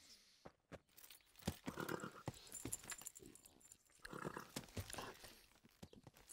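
Men grunt and shuffle in a scuffle.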